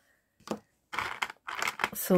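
Plastic charms click against each other in a plastic box.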